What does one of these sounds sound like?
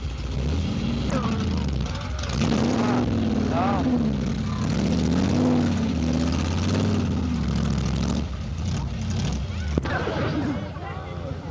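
An engine roars and revs hard as a vehicle churns through mud.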